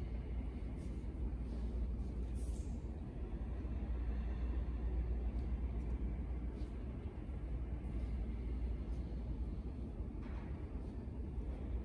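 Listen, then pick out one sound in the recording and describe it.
A woman shifts and rustles softly on a mat.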